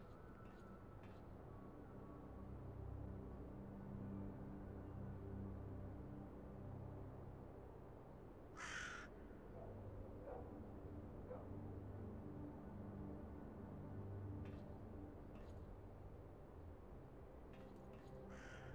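Footsteps thud on a metal pipe.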